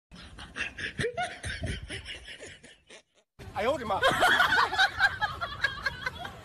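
A young woman exclaims with animation, close to a phone microphone.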